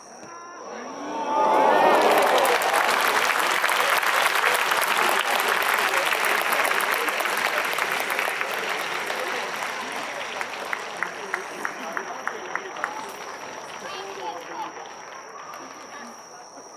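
A stadium crowd erupts in a loud cheer that slowly fades.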